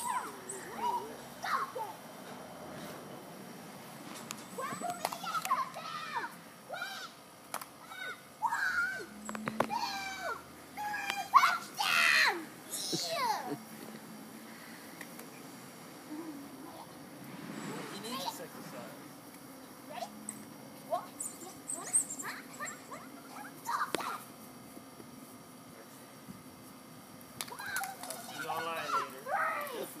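A young girl talks and calls out excitedly nearby.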